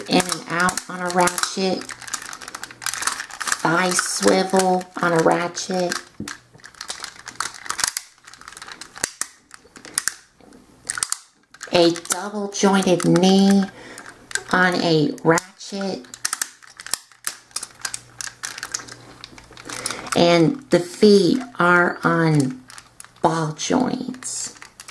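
Plastic toy parts click and clack as hands handle them.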